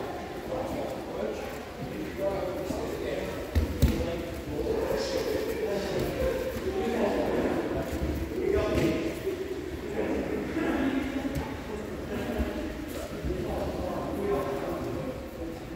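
Bodies thump and scuffle on a padded mat.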